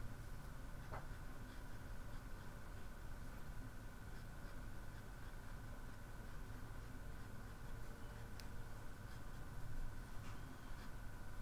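A paintbrush dabs and brushes softly on paper.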